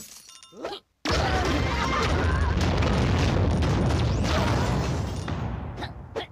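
A cartoon impact bursts with a long crashing rumble.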